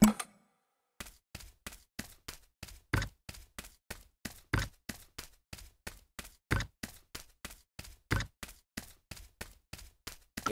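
Footsteps patter quickly and steadily on the ground.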